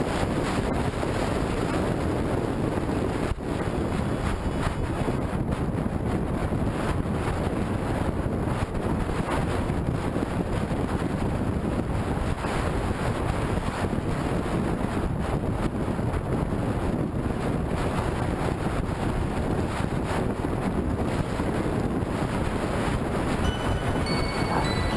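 Wind roars loudly past the rider.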